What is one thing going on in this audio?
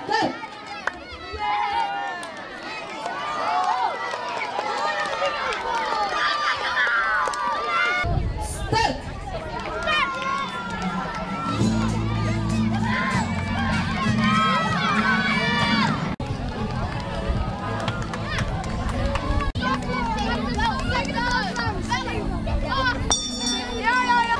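A crowd of children shouts and cheers close by.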